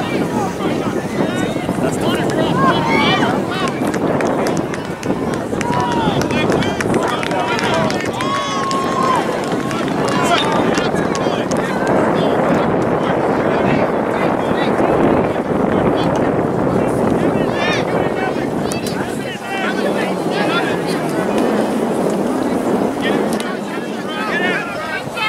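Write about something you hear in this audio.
A crowd of spectators and players talk and shout across an open field.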